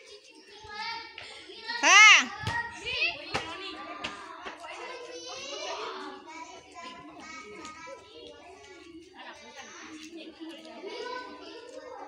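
Young children shout and call out excitedly nearby, outdoors.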